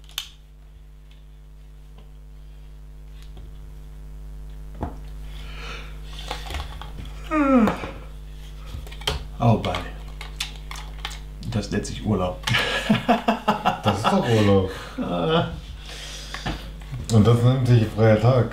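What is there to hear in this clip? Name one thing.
Small plastic bricks click and rattle as they are handled and snapped together.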